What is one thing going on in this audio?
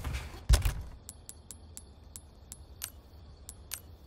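Soft clicks tick as a game inventory menu is moved through.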